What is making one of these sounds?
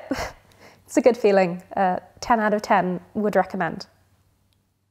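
A young woman speaks calmly and cheerfully, close to a microphone.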